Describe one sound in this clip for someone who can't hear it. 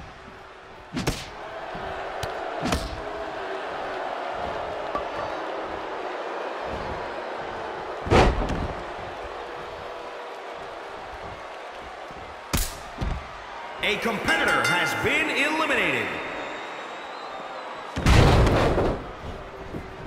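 Heavy blows thud as wrestlers strike and slam each other.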